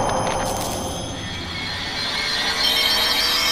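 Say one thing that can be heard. A magical flame whooshes and crackles with a sparkling shimmer.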